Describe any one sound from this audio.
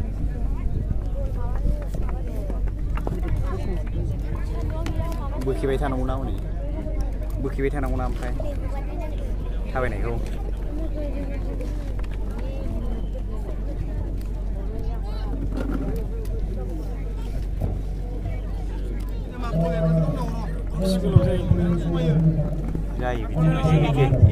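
A crowd chatters and calls out across an open field.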